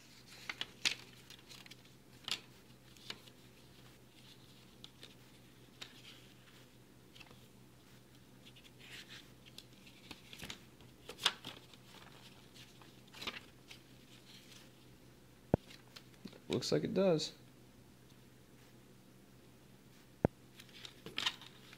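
Paper booklets rustle and flip as hands leaf through them.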